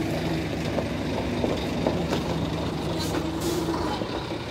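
Tyres of a coach bus crunch over dirt.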